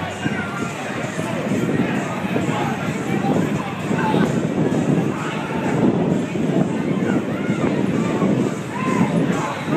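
A crowd of adults shouts excitedly outdoors.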